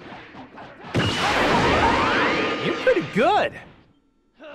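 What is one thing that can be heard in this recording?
A large energy blast explodes with a loud roaring rush.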